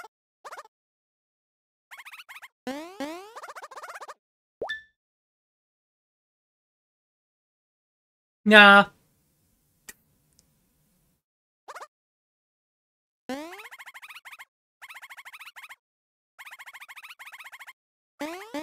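Game characters babble in short, high-pitched chattering bursts.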